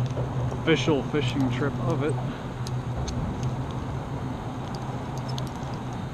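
Small water ripples lap gently against a kayak hull.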